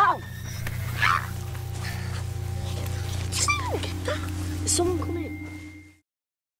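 A young man pants and cries out close by.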